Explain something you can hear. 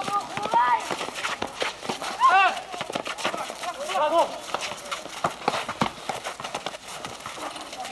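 A basketball bounces on hard ground.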